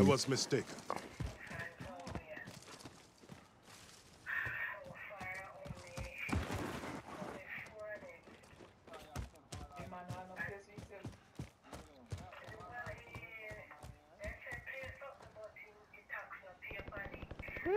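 Footsteps crunch through grass and dirt.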